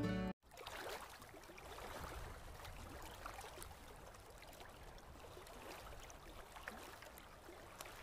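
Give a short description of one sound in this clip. Waves wash onto a sandy shore.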